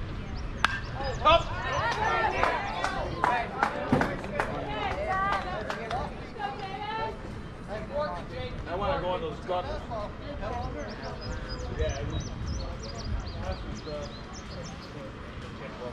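Players shout and call out across an open field.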